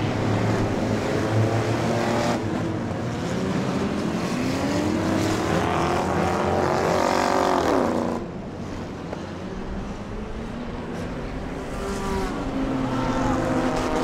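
Race car engines roar and rev around a track nearby.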